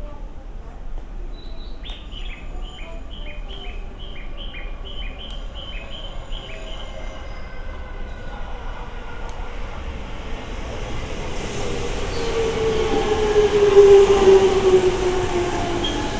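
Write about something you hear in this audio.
An electric train approaches and rumbles past close by.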